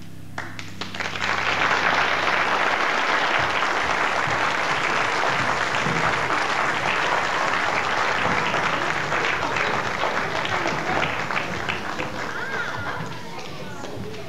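A large audience applauds and cheers loudly in a big hall, then the applause fades.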